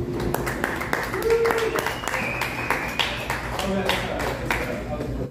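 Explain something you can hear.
An acoustic guitar strums chords.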